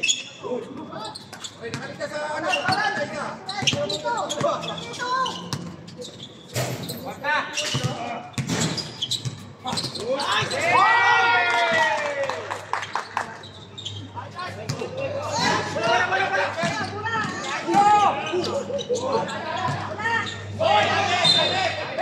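A basketball bounces on the hard court.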